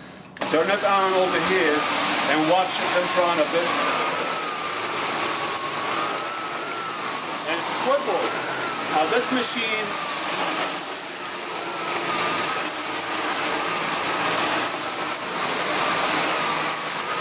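A vacuum cleaner runs with a steady whirring hum.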